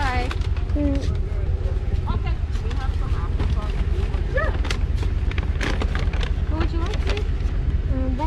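A paper bag rustles as it is handled.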